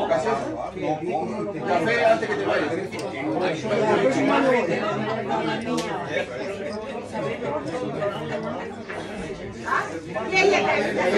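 Elderly men talk and laugh nearby with animation.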